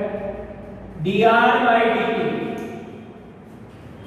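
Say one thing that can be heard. An elderly man speaks loudly and drawn out.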